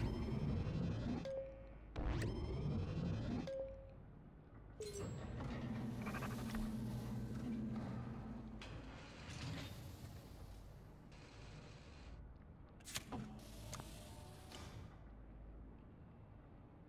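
A game's menus click and chime as they open and close.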